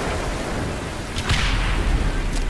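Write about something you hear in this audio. A bowstring snaps as an arrow is fired.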